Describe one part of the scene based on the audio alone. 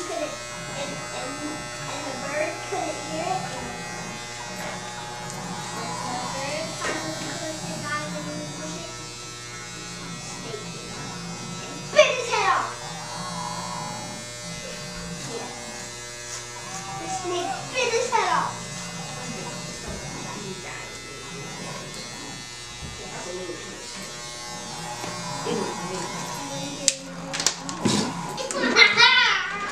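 Electric hair clippers buzz steadily.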